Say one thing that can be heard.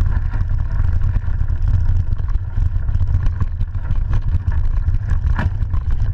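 Bike tyres roll and crunch over a rough dirt trail.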